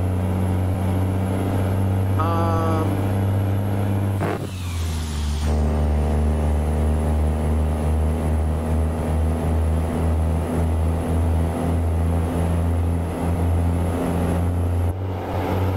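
A truck engine drones steadily at low revs.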